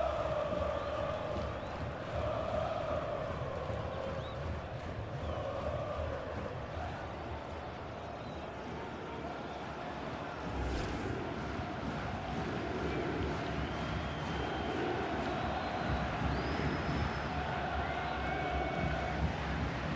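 A large stadium crowd roars and chants throughout.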